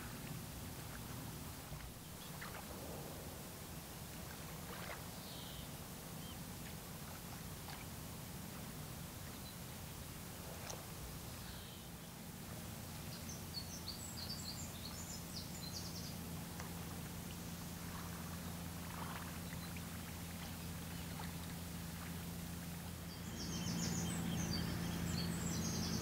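A large ship's engine hums low and steady across the water.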